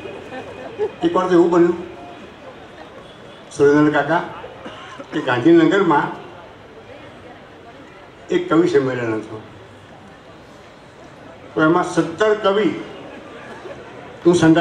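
An elderly man speaks slowly into a microphone, in short phrases with pauses.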